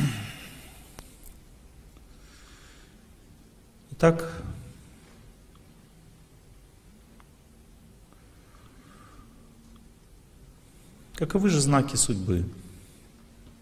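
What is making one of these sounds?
An older man speaks calmly into a microphone in a large hall, with long pauses.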